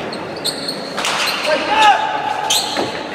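A ball smacks sharply against a wall several times.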